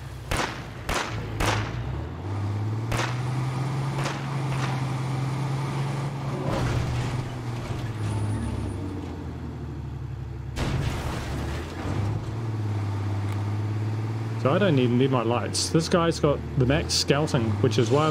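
A truck engine hums steadily as the truck drives along a road.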